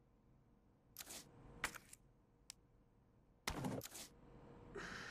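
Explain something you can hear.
Short electronic clicks and chimes sound in quick succession.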